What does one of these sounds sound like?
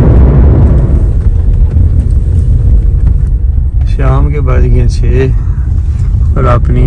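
A car engine rumbles low and steady while driving over a rough road.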